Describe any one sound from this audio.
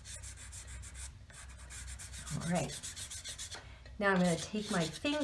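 A fingertip rubs and smudges pastel on paper in quick, soft strokes.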